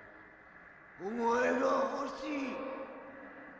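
A man speaks nearby in a strained, menacing voice.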